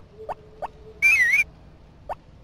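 A short chiming jingle plays as a door opens.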